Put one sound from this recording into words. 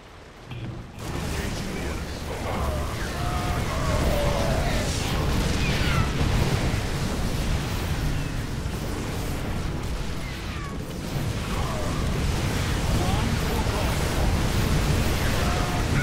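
Laser weapons zap and whine in a video game battle.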